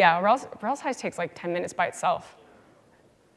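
A woman speaks into a microphone in a large hall, her voice echoing.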